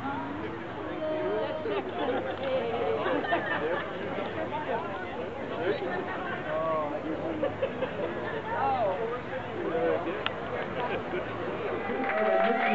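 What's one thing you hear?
A crowd of men and women chat and laugh outdoors.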